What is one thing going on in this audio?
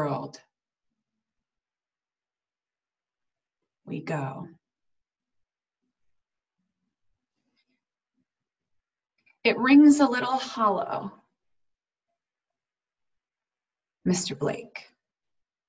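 A woman speaks calmly in short bursts over an online call.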